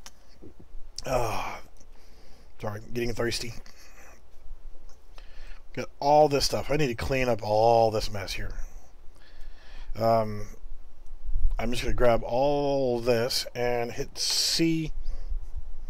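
A man talks calmly into a close microphone.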